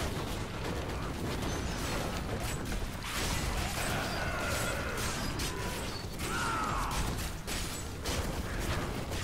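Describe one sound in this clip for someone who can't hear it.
Blows and impacts clash in quick succession.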